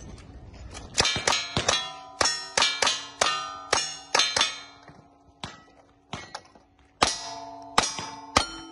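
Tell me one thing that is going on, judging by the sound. Steel targets ring with a metallic clang after each hit.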